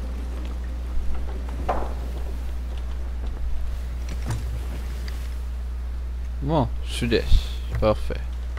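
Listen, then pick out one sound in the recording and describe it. Waves churn and wash against a wooden ship.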